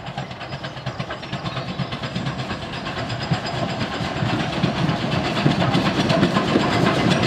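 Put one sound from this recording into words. A steam locomotive chuffs rhythmically as it approaches, growing louder.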